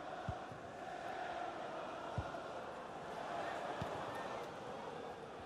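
A stadium crowd murmurs and cheers steadily.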